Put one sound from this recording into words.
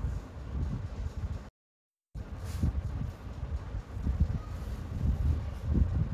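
A plastic ruler slides and taps on paper.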